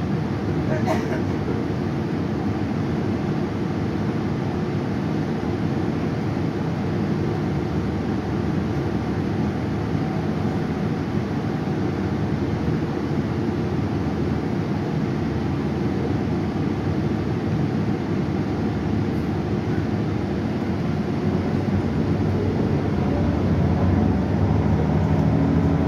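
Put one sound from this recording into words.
A bus engine rumbles steadily from inside the bus, growing a little louder toward the end.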